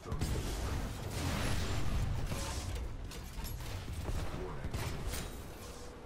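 Gunfire and explosions boom and crackle.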